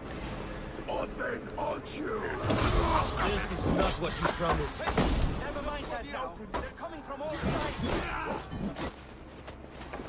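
Blades clash and thud in a close fight.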